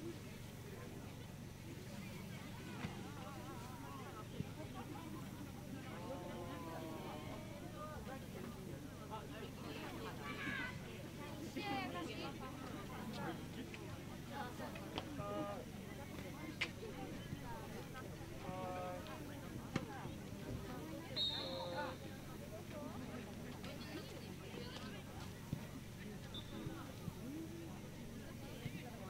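Voices of young people call out and shout far off across an open field outdoors.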